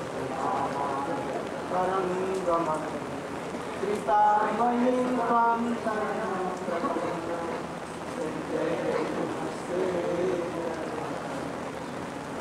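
An elderly man speaks slowly and calmly into a microphone, heard through a loudspeaker.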